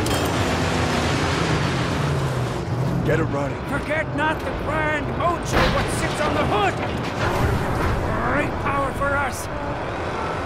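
Car engines roar.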